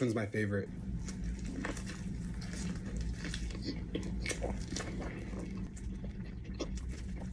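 A young man bites into a crunchy sandwich and chews.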